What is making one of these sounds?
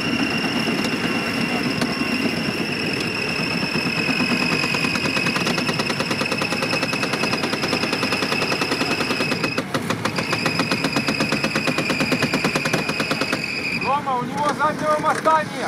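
A truck engine roars and revs hard under strain.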